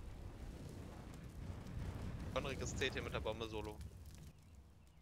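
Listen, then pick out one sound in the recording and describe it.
A fire burns with a low roar.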